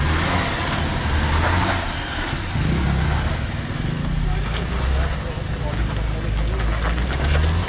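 An off-road vehicle's engine rumbles and revs as it climbs over sand.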